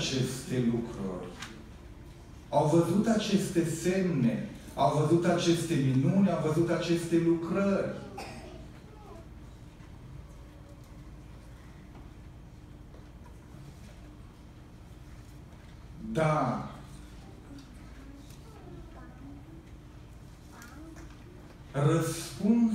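A middle-aged man speaks into a microphone over a loudspeaker in a large echoing hall, pausing between phrases.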